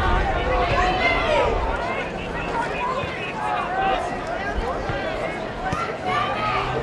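A large outdoor crowd shouts and jeers loudly.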